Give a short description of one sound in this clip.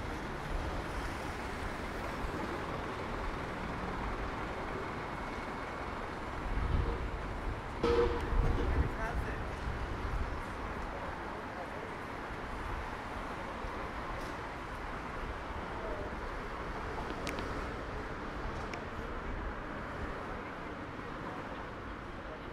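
Low city street noise rumbles steadily outdoors.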